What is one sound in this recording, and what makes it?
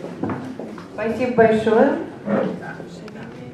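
A middle-aged woman speaks briefly through a microphone.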